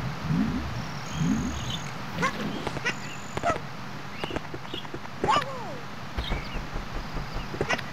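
Cartoonish game sound effects chirp and blip.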